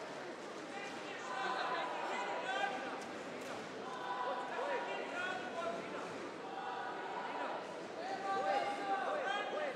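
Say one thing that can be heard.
Spectators cheer and shout encouragement in a large echoing hall.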